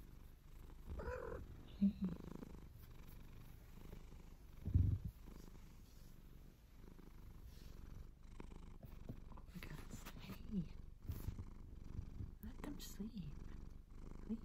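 A young woman speaks softly, very close.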